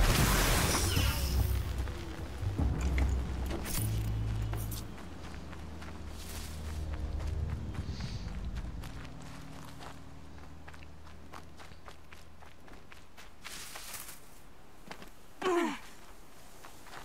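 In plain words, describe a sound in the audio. Footsteps crunch through dry grass and dirt.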